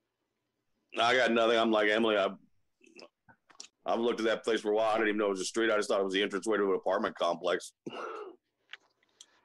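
A middle-aged man talks with animation over an online call.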